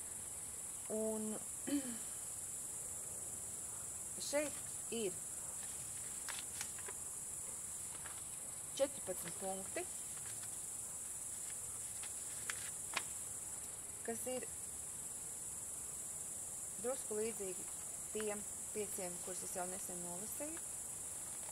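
A middle-aged woman speaks softly in short phrases, close by.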